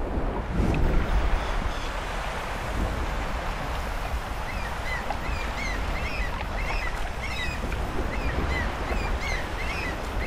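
Bare feet pad quickly over sand and grass.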